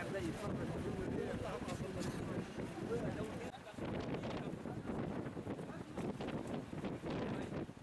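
A crowd of men murmurs outdoors.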